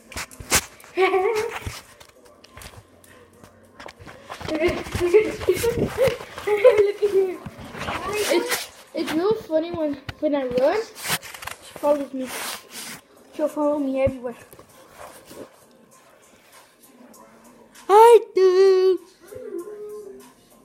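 A small dog howls and yowls in long, wavering cries.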